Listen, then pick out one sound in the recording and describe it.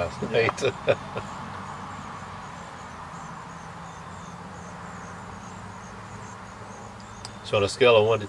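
A man speaks calmly up close.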